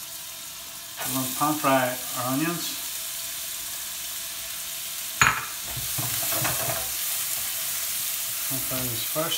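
Onions hiss and sizzle loudly as they fry in a pan.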